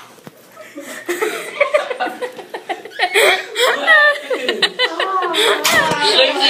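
Teenage boys laugh and shout loudly nearby.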